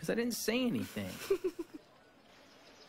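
A young woman giggles.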